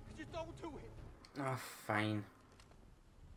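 A young man speaks tensely, close by.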